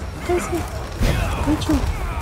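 A heavy blow lands with a thud.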